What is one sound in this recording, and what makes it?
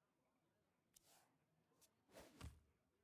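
A game's sound effect chimes and whooshes as a card is played.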